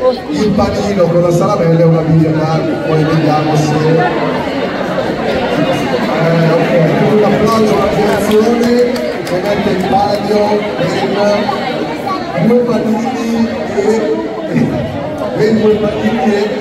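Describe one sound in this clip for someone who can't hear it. A man talks loudly in a large echoing hall.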